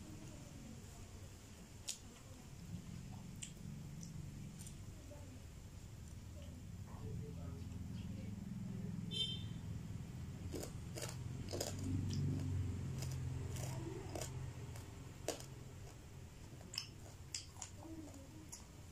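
A woman chews food loudly and wetly close to a microphone.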